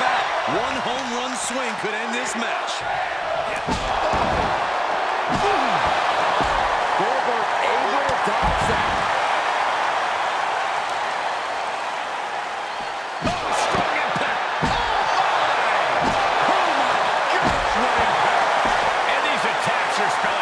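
A crowd roars and cheers steadily in a large arena.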